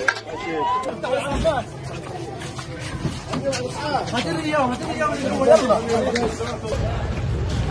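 Several men shout urgently close by.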